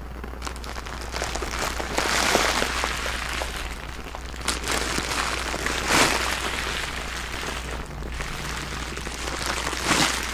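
A plastic bag of bubble wrap crinkles and rustles loudly.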